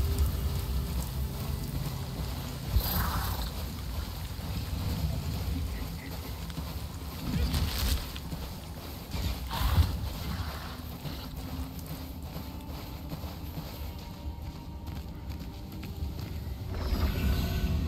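A mount's hooves pound steadily on sand.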